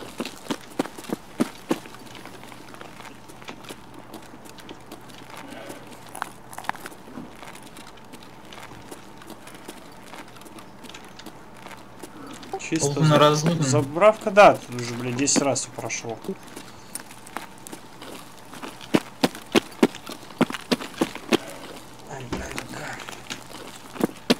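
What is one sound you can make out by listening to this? Footsteps tread on hard ground at a steady walking pace.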